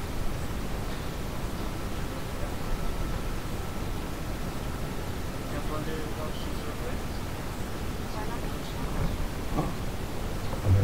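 Wind blusters against a microphone outdoors.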